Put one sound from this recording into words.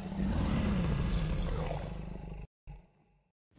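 A dragon roars loudly.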